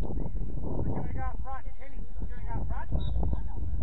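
Young men call out to each other in the distance.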